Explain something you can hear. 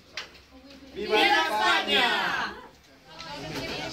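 A group of teenagers cheers loudly.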